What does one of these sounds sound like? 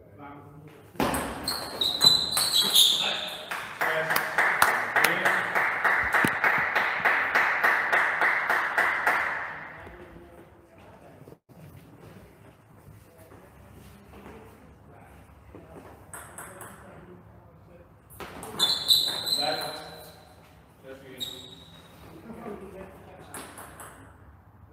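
A table tennis ball clicks back and forth between paddles and a table in an echoing hall.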